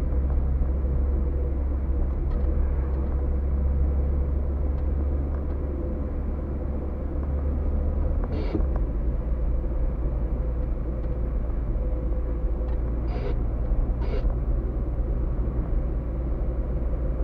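Tyres rumble over an uneven road.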